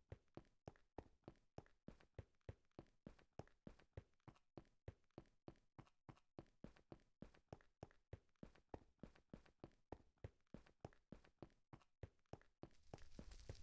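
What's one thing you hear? Quick, even footsteps thud on hard stone.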